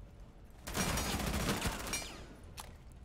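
Rapid gunfire rattles loudly in a short burst.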